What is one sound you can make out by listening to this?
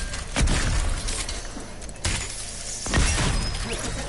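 A shotgun fires loud blasts in a game.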